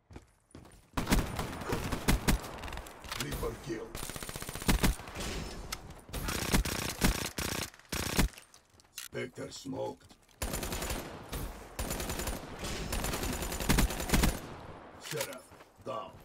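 Rapid gunfire bursts loudly and repeatedly.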